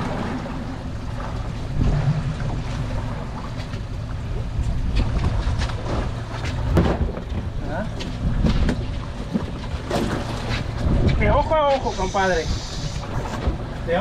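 Waves slap against a boat's hull.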